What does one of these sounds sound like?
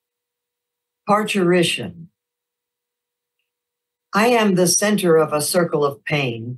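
A middle-aged woman speaks calmly and closely into a microphone, as if reading aloud over an online call.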